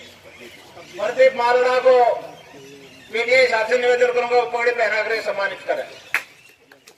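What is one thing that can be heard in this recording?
Men chant loudly together outdoors.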